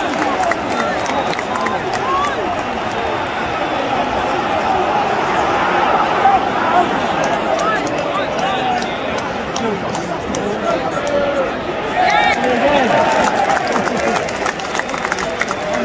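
Nearby male fans shout and sing.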